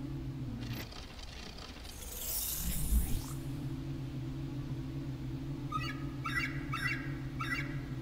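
A small robot's hover jet hums steadily.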